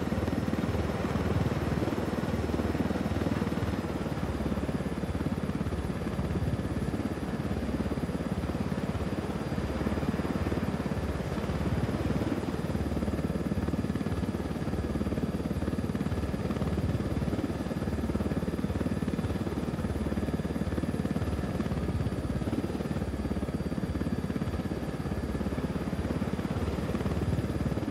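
A helicopter engine whines steadily.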